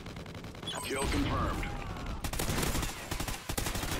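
Gunfire bursts out loudly nearby.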